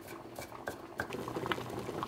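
Water bubbles at a boil in a small pot.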